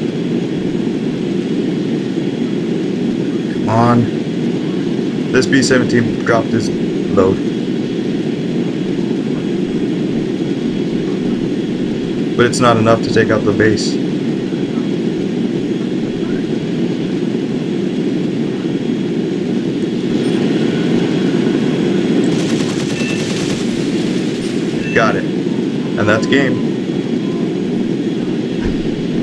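Jet engines roar in a steady, low drone.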